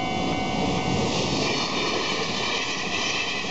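A train rushes past with a loud rumble and clatter.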